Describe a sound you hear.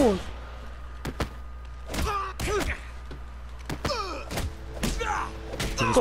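Heavy punches land in a brawl.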